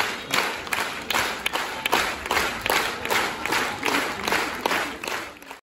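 A large audience claps in steady rhythm in a big echoing hall.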